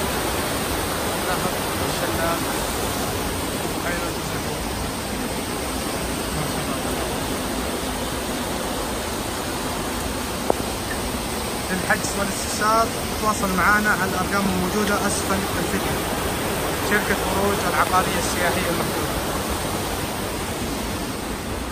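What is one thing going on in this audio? A mountain stream rushes and splashes steadily nearby.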